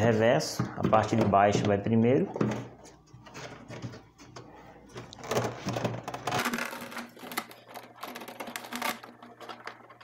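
A plastic shelf clatters and scrapes as hands slide it into place.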